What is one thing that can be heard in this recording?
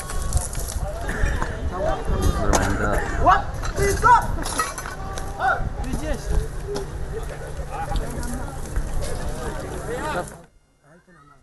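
Men talk outdoors at a distance.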